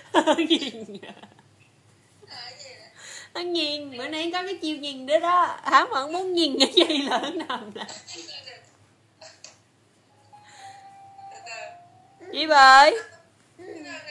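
A baby squeals and babbles happily close by.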